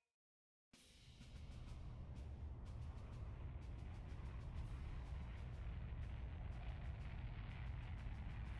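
An airship rumbles low and steady as it flies through clouds.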